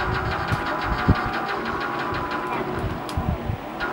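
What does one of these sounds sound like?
A car explodes with a loud blast in the game.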